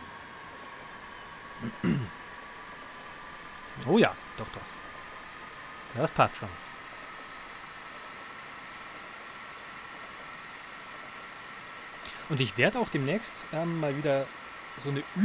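Train wheels roll along rails with a steady rumble.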